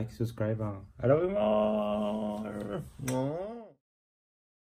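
A young man sings out a long drawn-out phrase playfully.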